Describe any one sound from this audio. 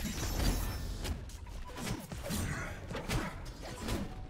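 Sharp combat impacts and magic whooshes clash in quick bursts.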